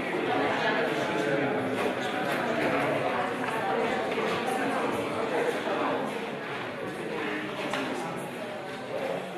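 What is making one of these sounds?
Footsteps scuff across a wooden floor in an echoing hall.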